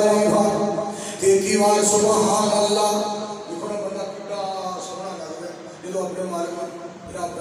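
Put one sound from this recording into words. A man chants in a long, drawn-out melodic voice into a microphone, heard through loudspeakers with echo.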